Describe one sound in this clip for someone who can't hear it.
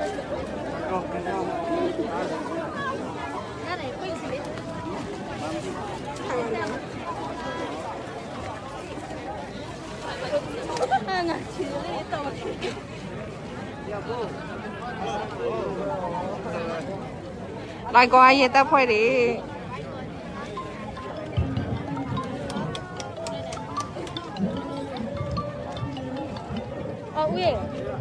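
A crowd of men and women talks and calls out nearby, outdoors.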